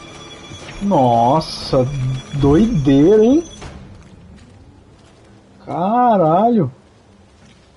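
A young man speaks in a drawn-out, playful voice close to a microphone.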